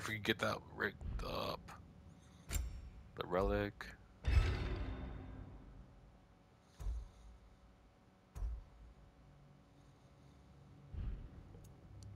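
Soft interface clicks sound as menu options change.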